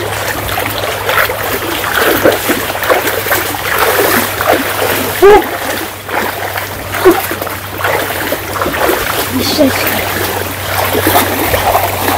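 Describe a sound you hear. People wade through shallow floodwater with soft splashing.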